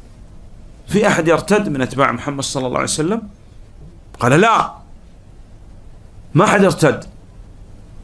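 A middle-aged man speaks with animation into a close microphone, in bursts with pauses.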